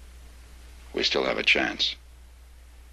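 A man speaks briefly in a low, serious voice, close by.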